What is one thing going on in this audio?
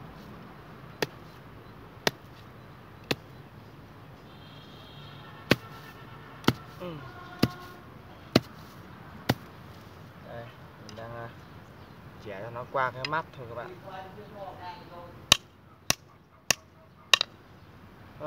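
A blade chops into wood with sharp, spaced knocks.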